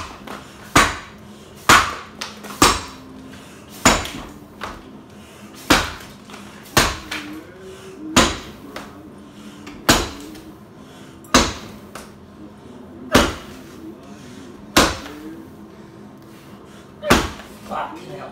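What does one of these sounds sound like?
An axe chops into a log with sharp, regular thuds.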